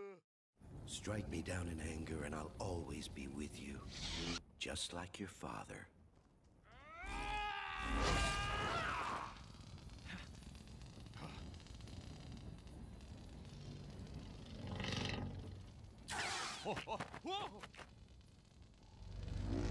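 A lightsaber hums.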